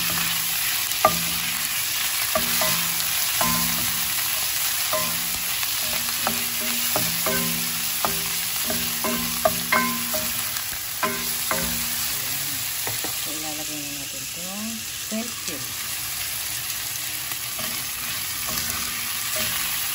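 A spatula scrapes and knocks against a pot.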